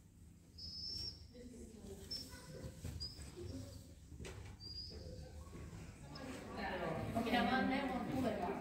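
A woman speaks to a dog in a large echoing hall.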